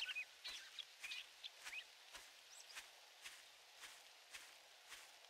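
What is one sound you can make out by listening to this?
Footsteps crunch through grass at a steady walking pace.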